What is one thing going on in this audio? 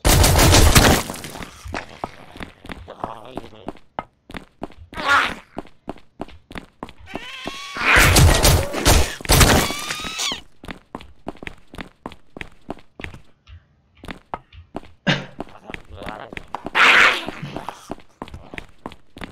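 Quick footsteps tap steadily on hard ground.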